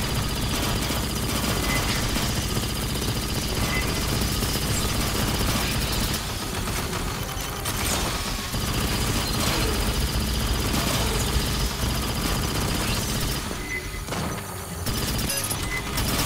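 Energy weapons crackle and zap.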